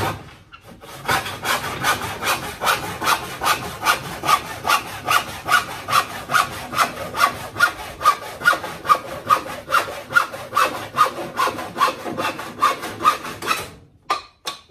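A man sands a wooden board by hand in quick, steady strokes.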